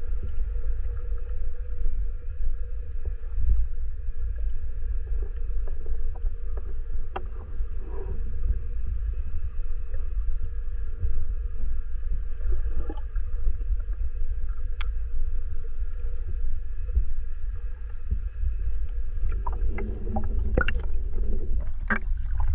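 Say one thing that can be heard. Water rumbles low and muffled, as heard from underwater.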